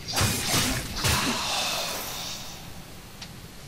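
Explosions burst loudly and fade.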